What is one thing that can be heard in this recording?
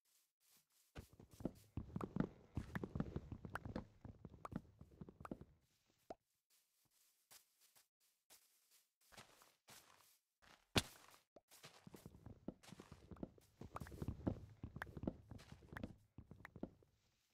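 Leaves and wood crunch repeatedly as blocks are broken.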